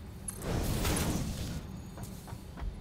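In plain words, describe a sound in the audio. A game's cutting beam hisses in a loud burst.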